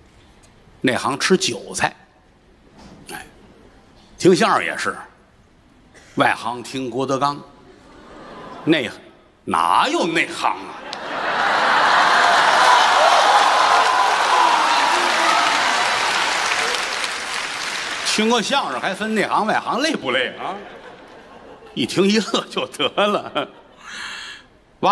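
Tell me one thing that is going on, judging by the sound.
A middle-aged man speaks with animation into a microphone, echoing in a large hall.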